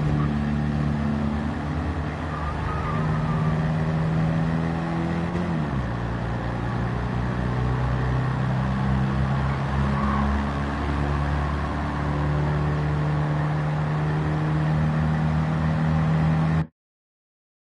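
Small car engines buzz steadily at high revs, dropping in pitch once as a gear changes.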